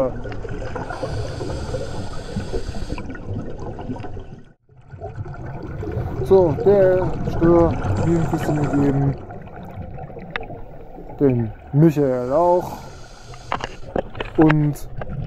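A diver breathes out through a regulator with a gurgling, hissing rush of bubbles underwater.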